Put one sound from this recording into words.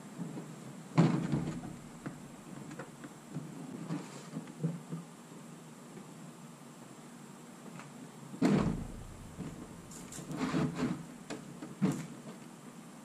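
A roof cargo box thuds and knocks as a man handles it.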